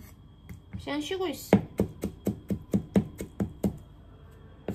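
A ceramic knife chops vegetables on a plastic cutting board.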